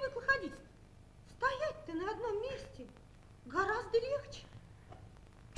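A young woman speaks in a theatrical, expressive voice on a stage.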